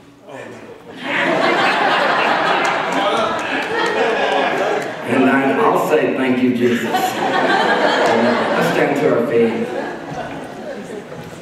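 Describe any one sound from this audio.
A group of men and women sing together.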